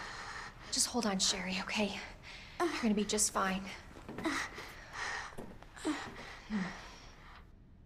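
A young woman speaks softly and reassuringly, close by.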